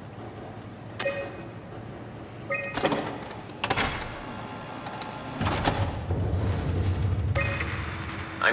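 Short electronic beeps sound as menu options are chosen.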